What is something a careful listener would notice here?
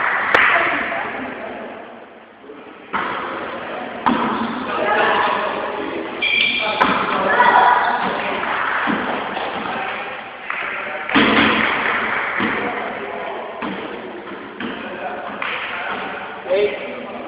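A volleyball thumps off players' hands in a large echoing gym.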